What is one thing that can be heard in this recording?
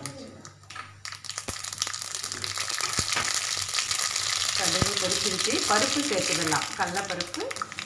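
Mustard seeds sizzle and pop in hot oil in a metal pan.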